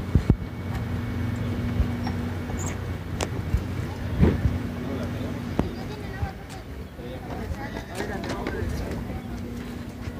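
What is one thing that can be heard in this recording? A bus engine idles with a steady low hum nearby.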